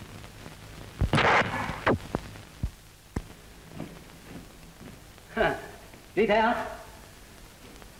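A young woman speaks, close by.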